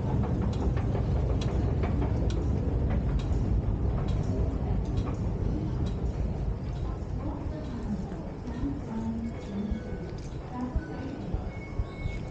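Footsteps tap on a hard floor in an echoing hall.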